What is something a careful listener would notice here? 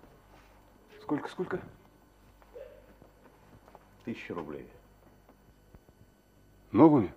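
A man speaks in short, halting phrases nearby.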